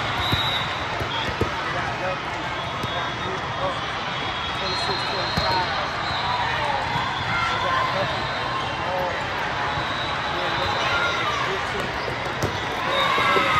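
A crowd of voices chatters and calls out in the echoing hall.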